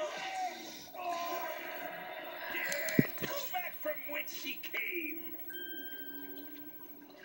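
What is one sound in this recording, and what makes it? Cartoon sound effects and music play through a television speaker.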